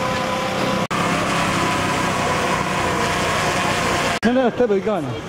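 The propellers of a quadcopter drone whine as it hovers overhead.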